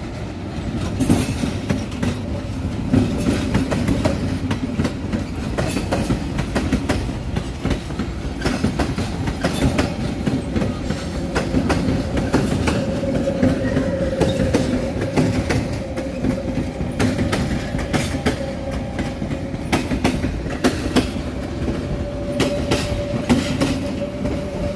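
Wheels clatter and click over rail joints.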